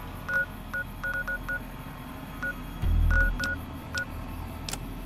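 Short electronic beeps sound as a menu is clicked through.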